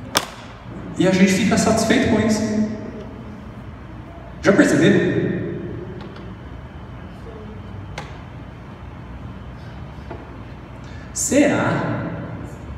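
A man speaks into a microphone over a loudspeaker in an echoing hall, pausing between phrases.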